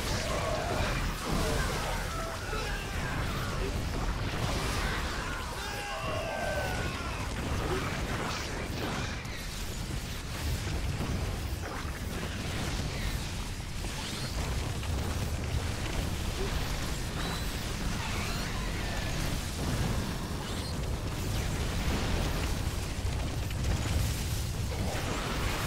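Game units fire weapons and explode in a dense battle.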